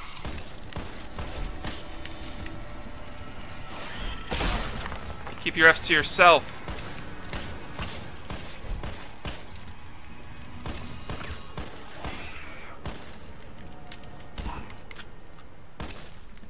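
Gunshots fire in quick, sharp bursts.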